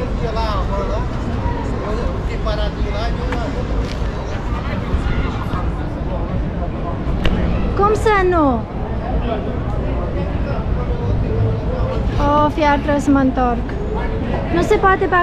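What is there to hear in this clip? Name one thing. City traffic and distant voices murmur outdoors.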